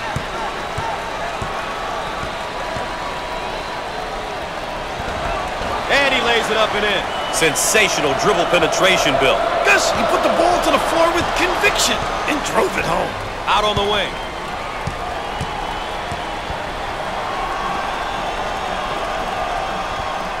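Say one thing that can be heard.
Basketball shoes squeak on a wooden court.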